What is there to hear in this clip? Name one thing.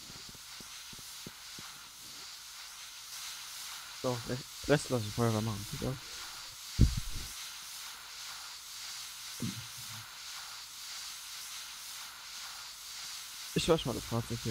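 Water sprays hard from a fire hose with a steady hiss.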